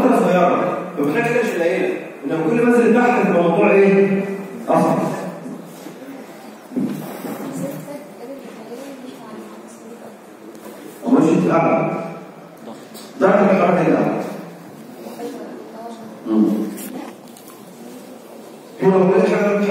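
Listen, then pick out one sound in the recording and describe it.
A young man speaks with animation into a microphone, heard through a loudspeaker.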